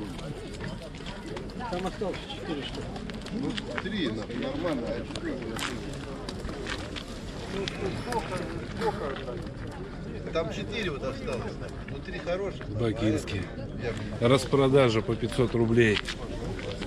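Pigeons coo in a cage.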